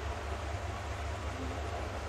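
A pencil scratches along paper.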